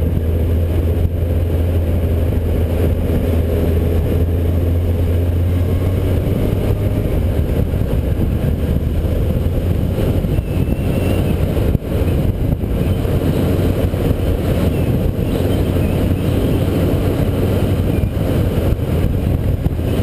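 Tyres roll steadily over a paved road.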